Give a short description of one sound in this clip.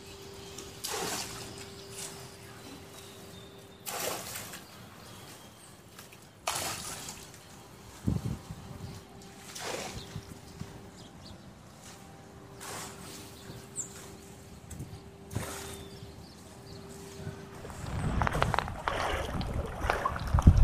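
Feet splash and slosh through shallow floodwater at a steady walking pace.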